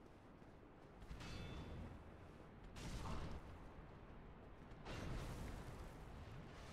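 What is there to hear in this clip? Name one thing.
A monster strikes with loud, heavy crashing bursts.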